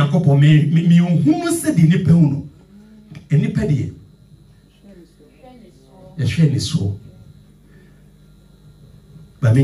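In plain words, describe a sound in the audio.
A man preaches with animation through a microphone in an echoing hall.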